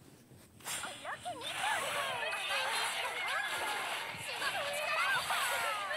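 Fantasy battle sound effects clash and burst in quick succession.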